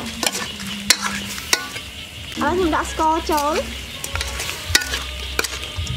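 A metal spoon clinks and scrapes against a pot.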